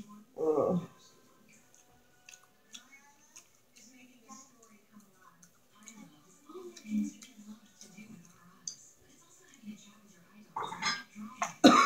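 A woman chews and smacks her lips close by.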